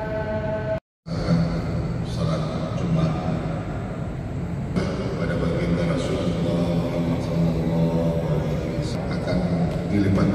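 A man speaks steadily into a microphone, heard through loudspeakers in a large echoing hall.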